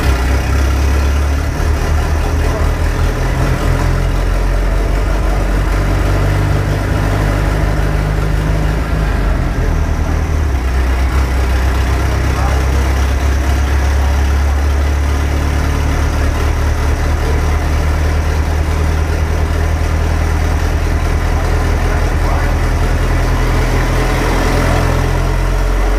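A large fan roars steadily.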